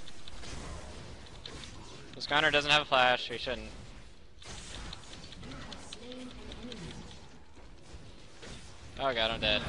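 Magic spell effects whoosh and crackle in a video game.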